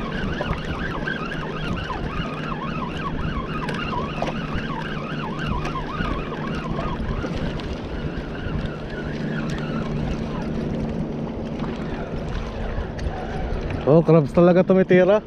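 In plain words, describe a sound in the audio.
A fishing reel whirs steadily as its handle is cranked.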